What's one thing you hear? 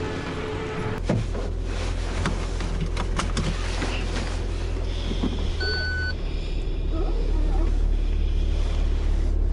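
A car engine starts and idles with a low steady hum.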